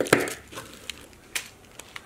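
Scissors snip through stiff paper and sequined fabric.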